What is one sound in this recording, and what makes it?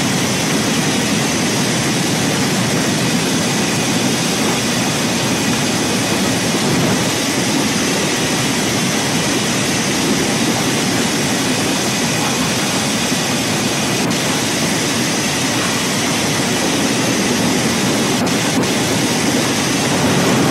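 A heavy truck engine drones steadily as the truck drives along.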